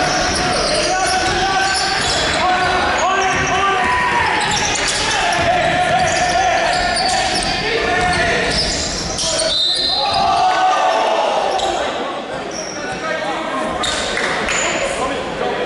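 Players and spectators call out and shout in the echoing hall.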